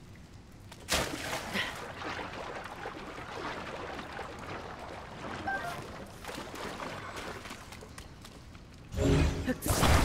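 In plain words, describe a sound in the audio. Water splashes steadily as a swimmer paddles through it.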